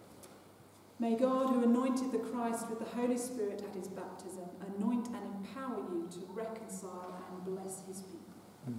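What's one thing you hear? A woman speaks in a steady, chanting voice in an echoing space.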